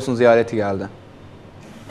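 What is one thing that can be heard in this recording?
A man speaks calmly and clearly into a microphone, close by.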